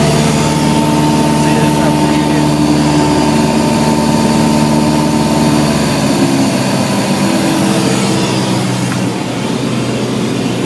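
A small plane's propeller engine drones steadily and loudly.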